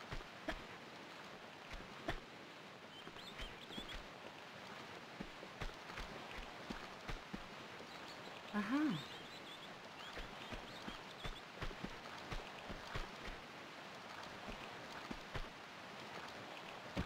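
Footsteps patter quickly on a hard stone floor.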